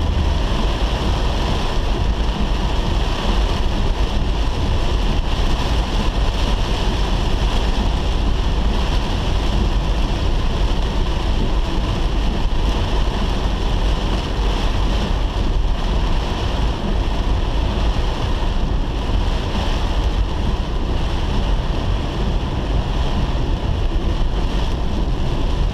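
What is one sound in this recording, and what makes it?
Heavy rain drums steadily on a car's roof and windscreen.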